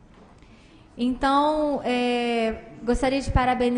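A woman speaks into a microphone with animation.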